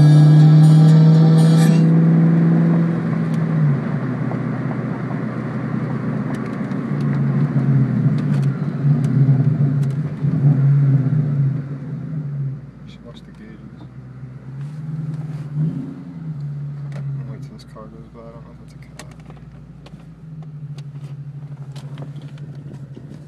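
A car engine hums and revs loudly, rising and falling.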